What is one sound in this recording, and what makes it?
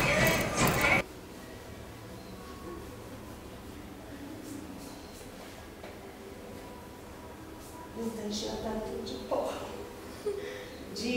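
A cloth squeaks as it wipes a tiled wall.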